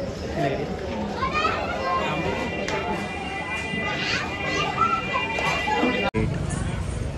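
Men talk and chatter nearby in a busy crowd.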